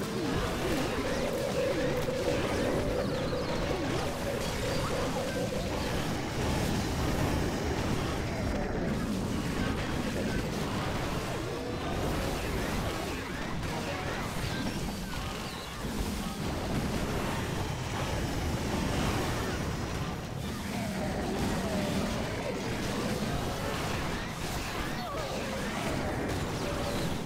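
Explosions and attack blasts crackle and thud constantly.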